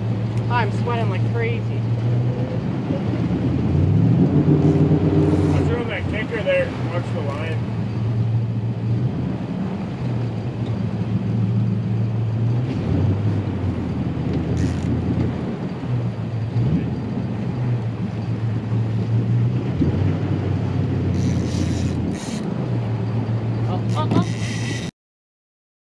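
River water rushes past a boat.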